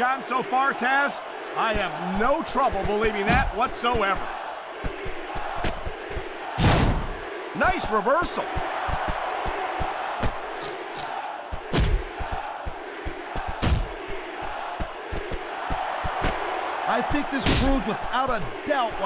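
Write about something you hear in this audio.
Heavy thuds of bodies slamming sound as two wrestlers grapple.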